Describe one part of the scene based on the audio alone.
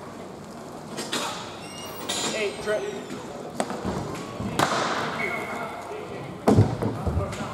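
Hockey sticks click and clack against a ball and the floor.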